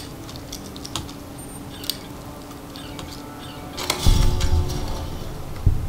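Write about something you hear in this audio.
A lock pick clicks and scrapes in a lock.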